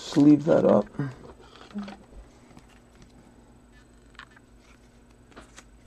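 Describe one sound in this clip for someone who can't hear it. A plastic wrapper crinkles softly as hands handle it.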